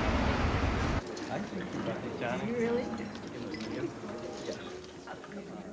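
People chatter and murmur around a busy dining room.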